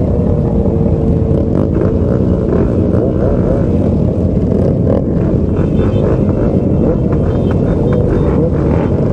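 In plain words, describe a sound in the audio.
Many motorcycle engines idle and rev loudly close by.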